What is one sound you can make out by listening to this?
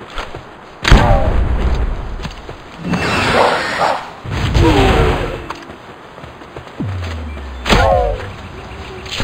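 Small creatures squeal and cry out in pain.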